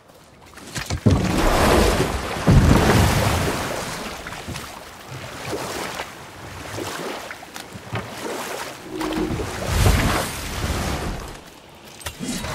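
Oars splash and water churns as a small boat is rowed.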